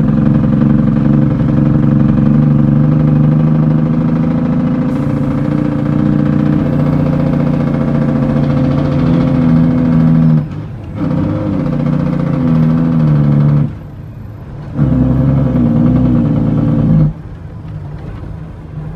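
A vehicle's tyres rumble over a rough dirt road.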